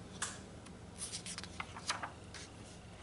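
A page of a book is turned with a soft paper rustle.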